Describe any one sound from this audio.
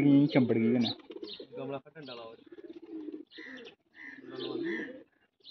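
Pigeons coo close by.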